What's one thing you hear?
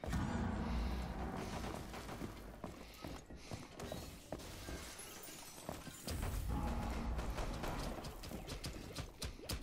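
Footsteps thud quickly across a hard floor.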